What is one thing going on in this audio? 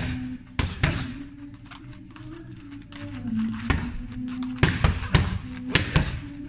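Gloves smack sharply against punch mitts in quick bursts.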